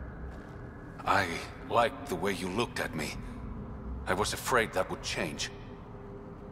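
A young man speaks softly and earnestly, close by.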